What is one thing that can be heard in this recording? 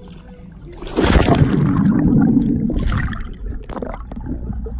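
Water bubbles and churns underwater.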